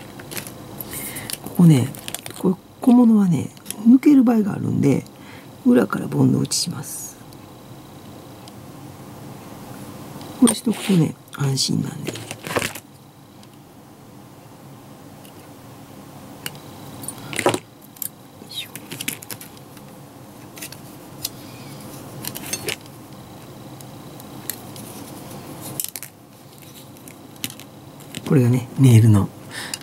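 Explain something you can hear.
Small plastic parts click and tap as they are handled and fitted together.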